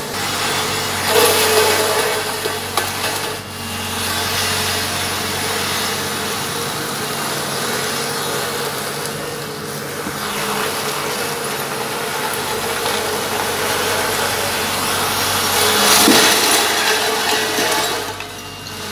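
Glass bottles crunch and shatter under a heavy roller.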